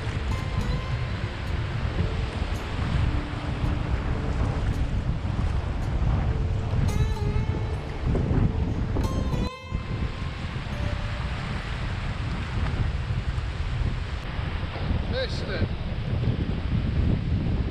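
Surf waves break and wash onto a beach.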